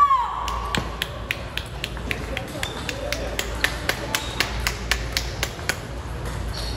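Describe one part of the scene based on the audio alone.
A ping-pong ball bounces quickly and steadily on a hard surface.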